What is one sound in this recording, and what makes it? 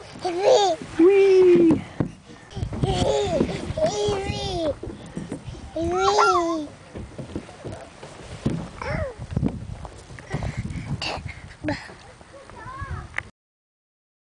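A toddler squeals and babbles happily close by.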